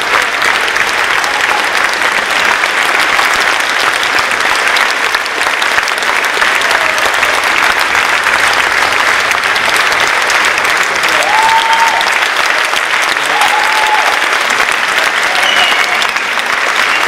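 A large crowd applauds loudly and steadily in a big hall.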